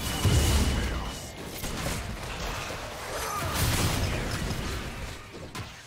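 Video game battle effects whoosh and crash in quick bursts.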